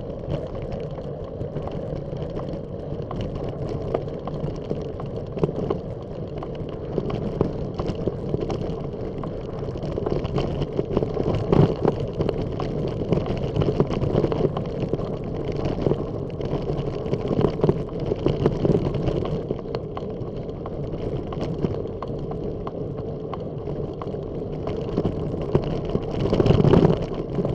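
Tyres crunch and rattle steadily over a gravel path.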